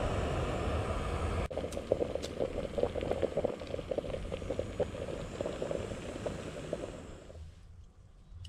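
A gas canister stove's burner roars under a pot.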